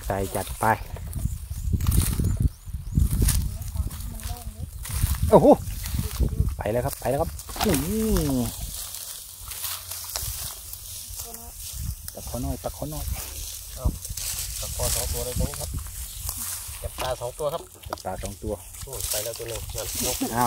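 Dry straw rustles and crackles as hands push through it.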